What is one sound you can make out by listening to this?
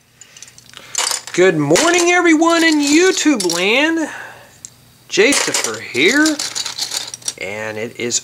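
Plastic toy bricks clatter and rattle as a hand sorts through them.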